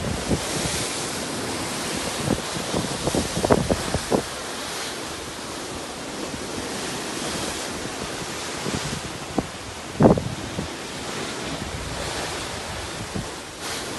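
Waves churn and splash against the side of a moving ship.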